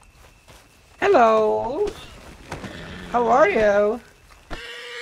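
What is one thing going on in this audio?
A horse whinnies nearby.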